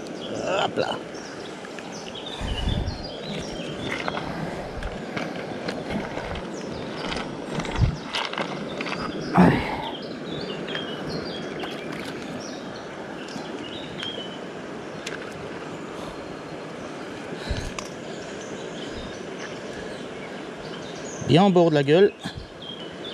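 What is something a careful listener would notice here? A shallow river flows and babbles over stones nearby.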